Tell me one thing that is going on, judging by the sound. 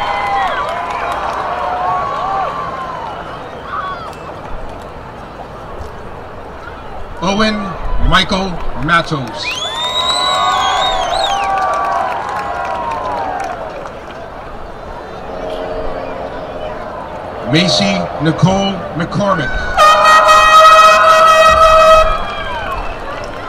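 Audience members clap.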